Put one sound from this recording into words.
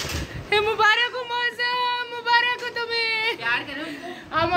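A woman sings a long held note close by.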